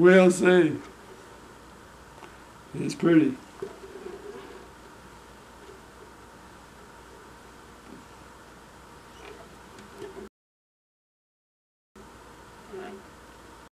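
An elderly man talks calmly close to a microphone, in short bursts with pauses.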